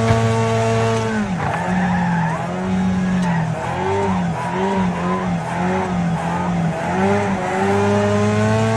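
A racing car engine roars, its pitch dropping and rising as it shifts and revs.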